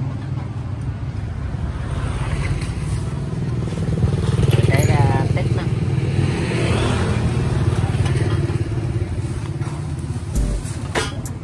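A motorcycle engine idles with a steady, throbbing rumble.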